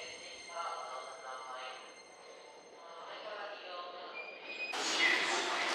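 An electric train hums with a rising whine.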